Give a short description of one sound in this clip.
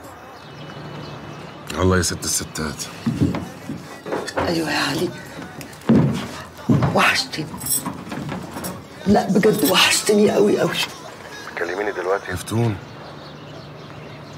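A man speaks calmly on the phone.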